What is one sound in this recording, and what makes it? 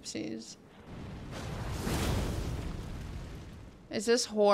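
A magic blast whooshes loudly.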